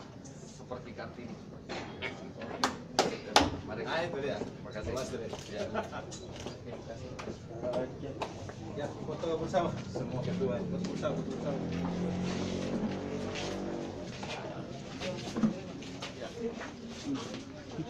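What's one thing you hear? Several adult men and women chat and murmur close by.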